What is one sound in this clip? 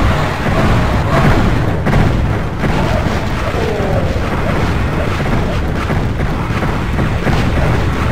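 A crossbow fires bolts again and again.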